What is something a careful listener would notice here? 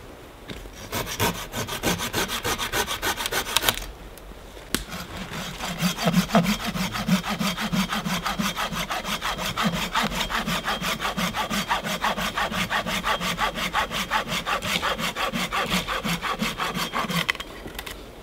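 A chainsaw runs loudly and cuts through branches.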